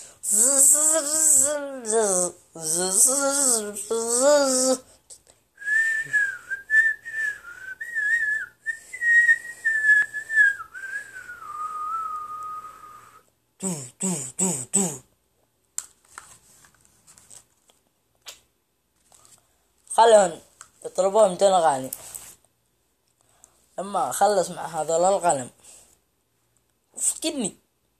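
A teenage boy sings and raps in short bursts close by.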